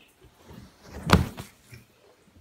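A towel swishes through the air.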